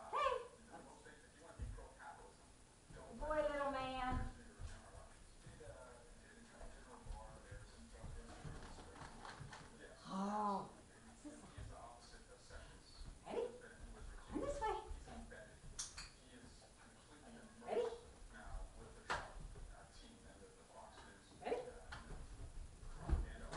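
A woman talks to a dog in a lively, sing-song voice nearby.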